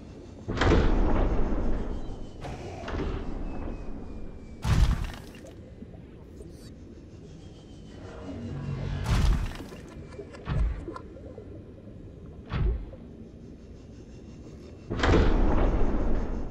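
Underwater engines hum and whoosh as a small craft moves.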